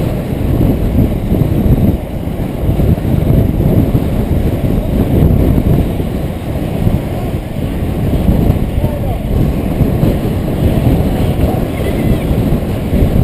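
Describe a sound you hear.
Inline skate wheels roll and grind on asphalt.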